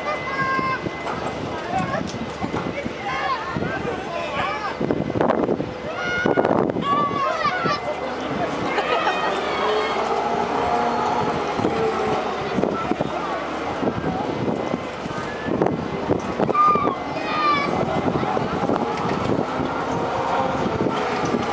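Riders on a swinging fairground ride scream in the distance.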